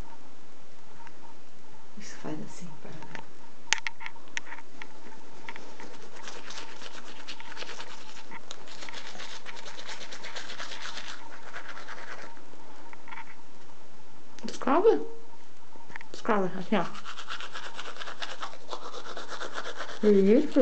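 A toothbrush scrubs softly against small teeth.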